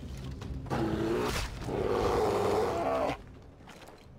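A bear roars and growls loudly in pain.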